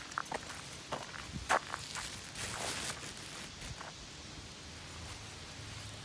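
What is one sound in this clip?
Leaves and twigs rustle underfoot.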